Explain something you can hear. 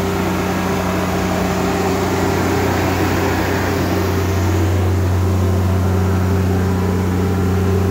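A diesel generator runs with a steady low hum close by.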